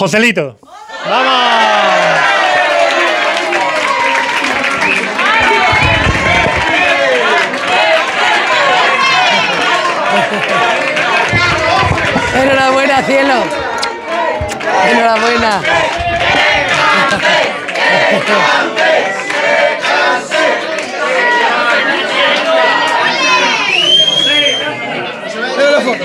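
A small crowd claps and cheers loudly indoors.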